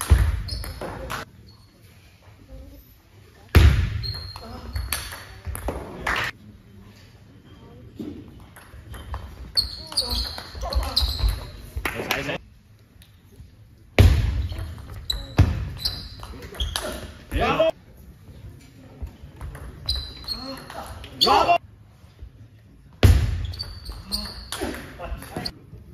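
A table tennis ball clicks back and forth between paddles and table in an echoing hall.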